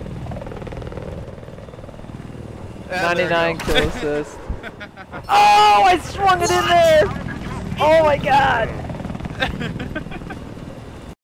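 A helicopter's rotor thumps and its engine drones steadily.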